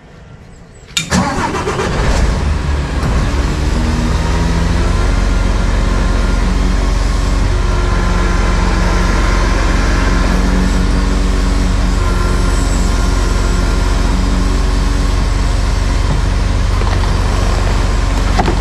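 A crane's engine starts up and runs with a loud, steady drone.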